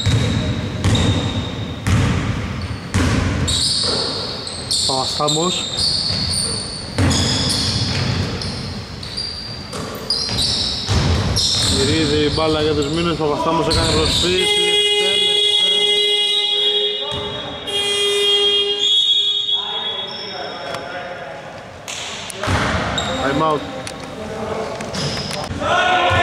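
A basketball bounces with hollow thuds.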